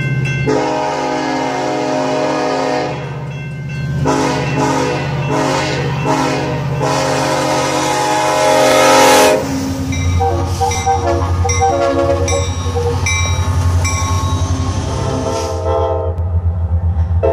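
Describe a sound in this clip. A diesel locomotive engine rumbles deeply as the train passes close by.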